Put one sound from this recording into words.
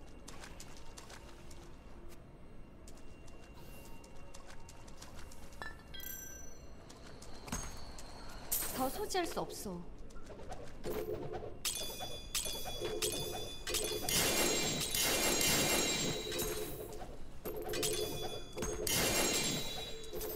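Spells and weapons clash in a game battle.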